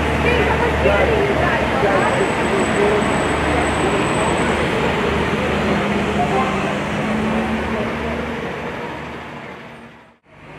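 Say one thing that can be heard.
A diesel ambulance drives past.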